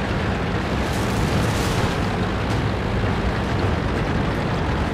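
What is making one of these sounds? Branches and leaves crash and rustle as a tank pushes through them.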